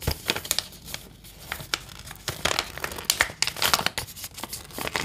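Plastic packets crinkle and rustle as hands handle them close by.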